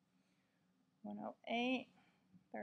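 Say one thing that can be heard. A woman speaks calmly close to a microphone.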